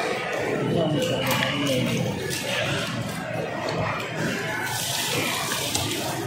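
A knife slices through raw fish.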